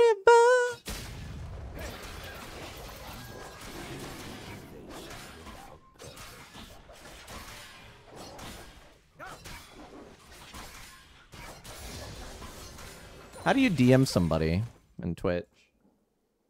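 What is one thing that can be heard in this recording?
Video game combat sound effects clash and whoosh.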